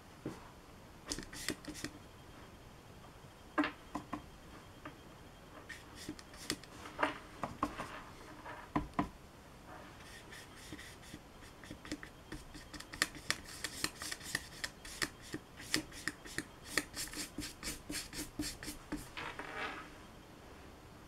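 A paintbrush scratches and taps on paper.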